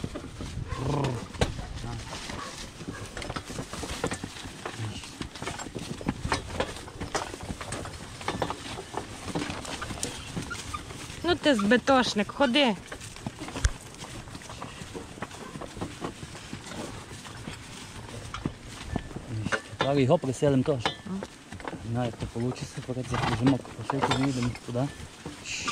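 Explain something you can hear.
A horse-drawn cart rattles and creaks as it rolls along.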